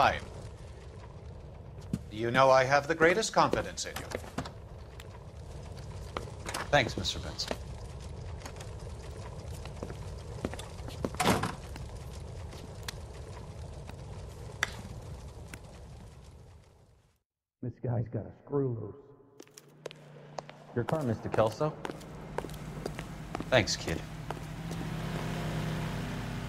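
A fire crackles softly.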